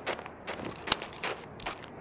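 A pistol is reloaded with a metallic click.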